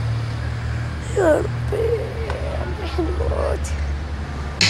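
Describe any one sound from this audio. A young boy groans and speaks weakly in pain, close by.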